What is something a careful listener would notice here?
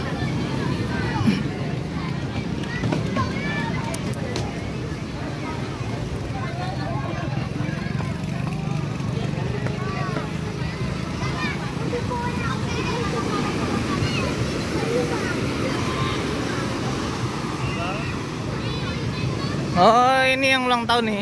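Surf breaks and rolls onto a sandy shore outdoors.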